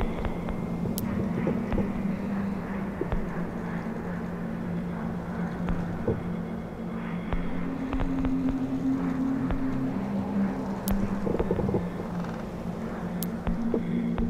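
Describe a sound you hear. Short electronic clicks tick now and then as menu choices change.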